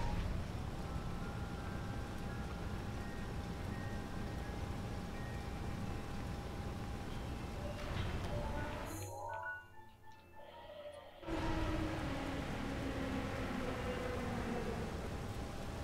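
Strong wind roars steadily.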